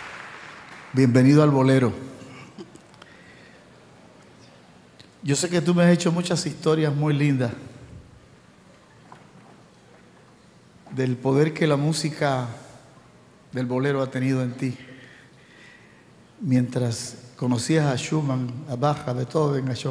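A middle-aged man speaks with animation through a microphone over a loudspeaker in a large hall.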